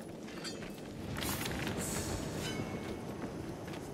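A creature leaps and lands with a thud.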